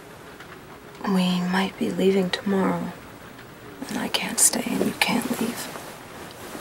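Another young woman answers quietly nearby.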